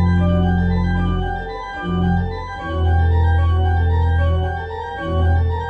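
A pipe organ plays sustained chords with deep bass notes.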